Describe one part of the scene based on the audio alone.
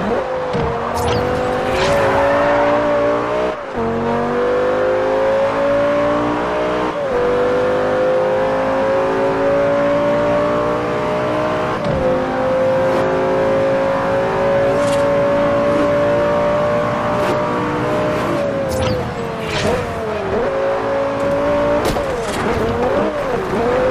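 Tyres screech through sharp bends.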